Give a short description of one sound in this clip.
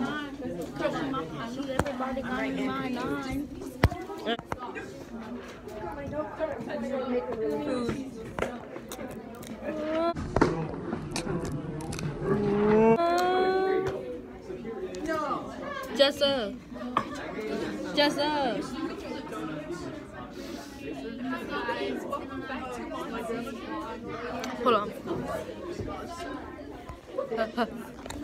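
Teenage girls talk and laugh close to the microphone.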